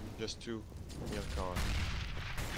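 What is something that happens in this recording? A grenade explodes in a video game.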